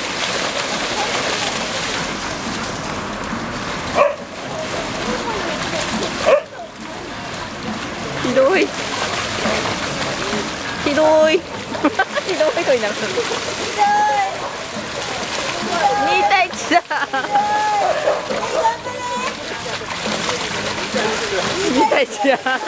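Water splashes as dogs run through a shallow stream.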